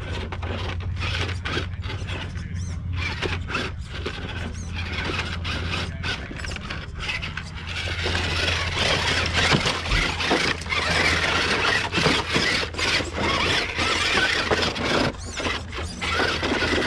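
A small electric motor whines as a toy truck crawls over rocks.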